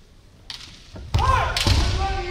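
Bamboo swords strike kendo armour with a sharp crack.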